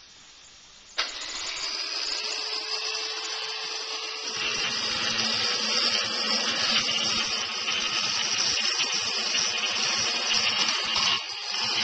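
An electric saw motor starts and runs with a loud steady whine.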